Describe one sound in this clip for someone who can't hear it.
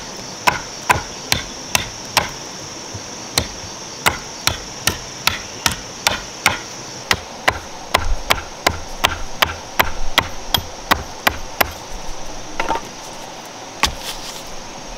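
A mallet knocks steadily on a wooden stake, blow after blow.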